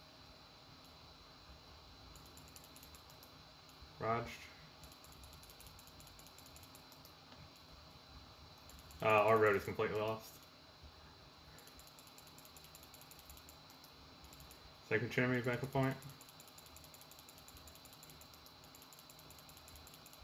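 Keys tap and click on a keyboard.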